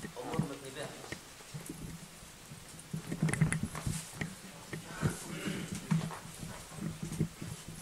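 Men's voices murmur nearby in an echoing room.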